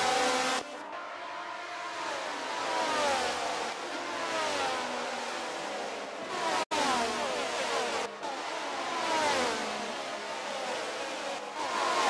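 Race car engines scream at high revs, their pitch sliding down with each gear change.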